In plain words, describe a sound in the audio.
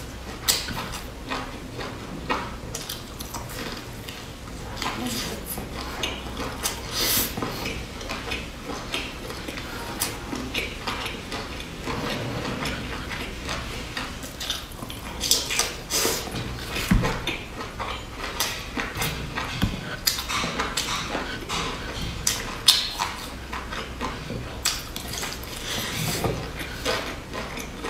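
A young woman chews and crunches crispy flatbread close to a microphone.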